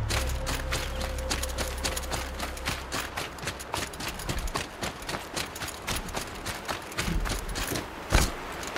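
Footsteps patter quickly through grass and over rocky ground.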